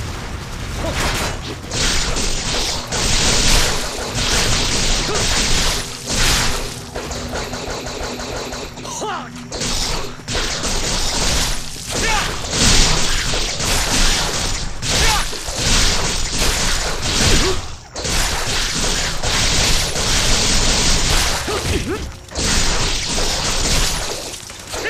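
Sword blades slash and clang in rapid bursts.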